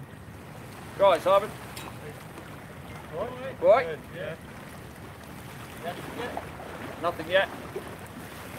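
A middle-aged man speaks calmly close by, outdoors.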